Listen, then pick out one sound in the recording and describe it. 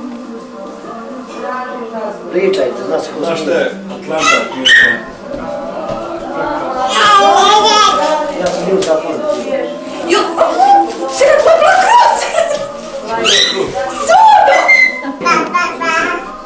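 Adults talk and laugh together nearby.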